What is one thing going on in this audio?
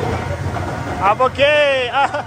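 Riders on a boat ahead scream.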